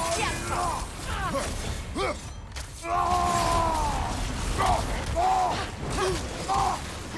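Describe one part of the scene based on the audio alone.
Wolves snarl and growl close by.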